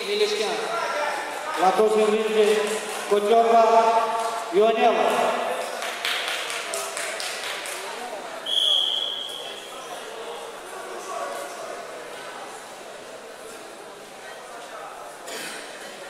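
A crowd of spectators chatters and cheers in a large echoing hall.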